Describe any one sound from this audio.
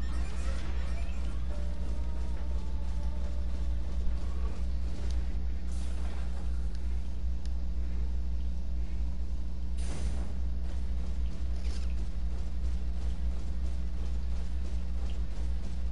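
A heavy walking machine clanks with metal footsteps.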